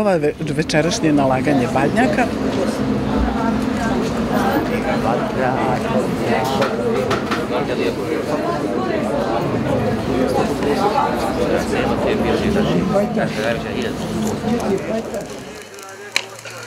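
A crowd of voices chants together.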